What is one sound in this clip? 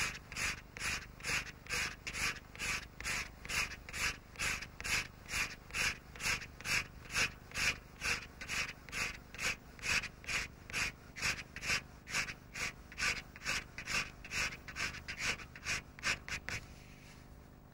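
A felt-tip marker scribbles rapidly back and forth on paper in quick, even strokes.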